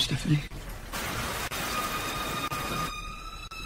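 Water rushes over a small waterfall.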